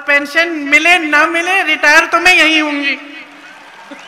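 A middle-aged woman speaks loudly and passionately into a microphone, heard through loudspeakers.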